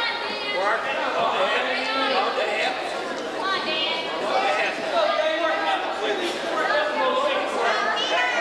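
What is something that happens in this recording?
A crowd of spectators shouts and cheers loudly in a large echoing hall.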